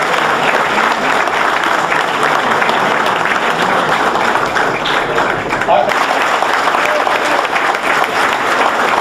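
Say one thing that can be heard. A crowd applauds loudly and steadily indoors.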